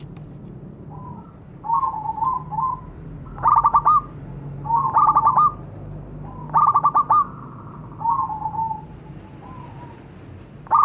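A zebra dove coos in rapid bursts.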